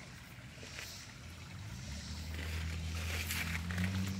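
A shallow stream trickles over stones.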